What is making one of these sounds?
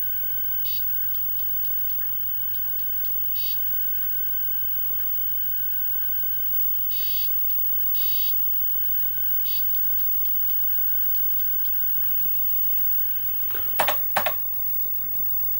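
An old monitor hums with a steady high whine.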